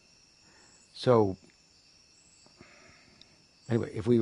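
An elderly man speaks briefly close by.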